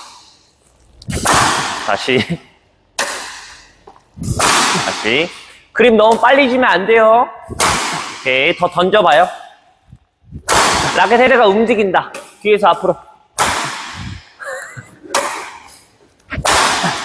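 A racket smacks a shuttlecock sharply, ringing through a large echoing hall.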